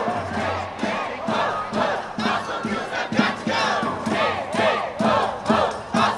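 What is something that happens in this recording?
A crowd of protesters chants loudly outdoors.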